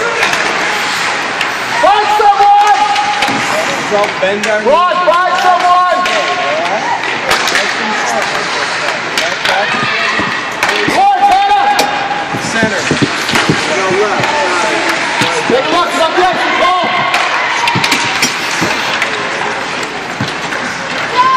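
Ice hockey skates scrape and carve across ice.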